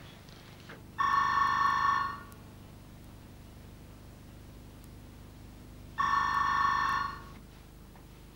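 A telephone rings loudly in two bursts.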